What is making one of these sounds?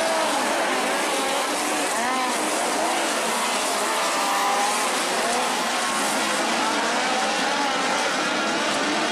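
A crowd murmurs nearby.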